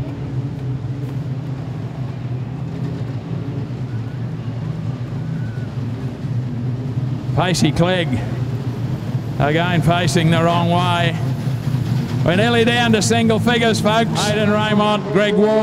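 Race car engines drone steadily in the distance.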